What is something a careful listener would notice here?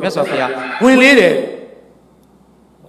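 An elderly man speaks with animation into a close microphone.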